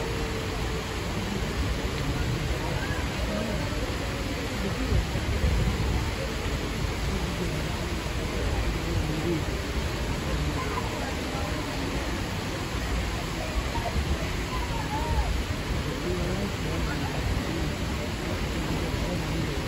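Water splashes steadily down a rocky waterfall outdoors.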